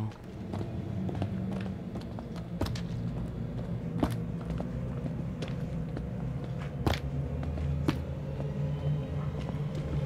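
Footsteps run along a hard floor.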